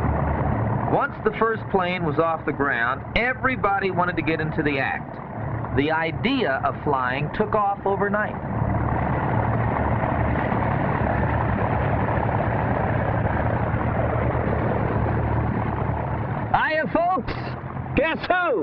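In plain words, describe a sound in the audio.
A man speaks with animation over a radio headset.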